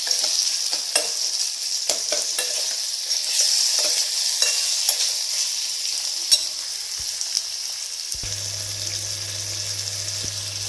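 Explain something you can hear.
Food sizzles and crackles in hot oil.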